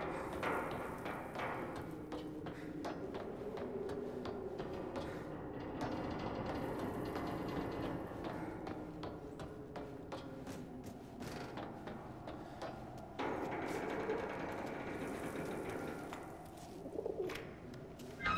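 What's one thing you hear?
Footsteps thud close by.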